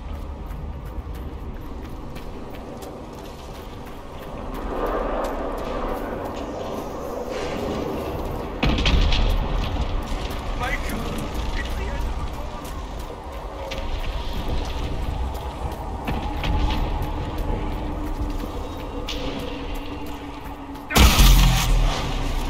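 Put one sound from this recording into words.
Footsteps crunch quickly on snow as someone runs.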